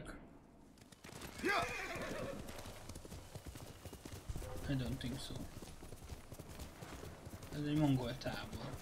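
A horse gallops, its hooves thudding on soft ground.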